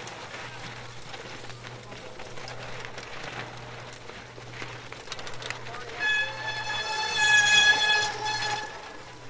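Bicycle tyres skid and crunch over loose, dusty dirt.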